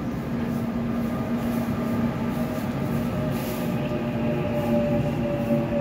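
A subway train rolls past with a steady rumble and whine.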